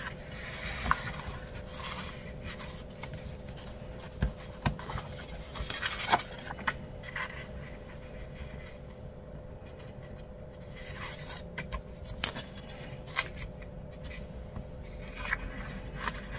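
Paper pages rustle and flip as a hand turns them.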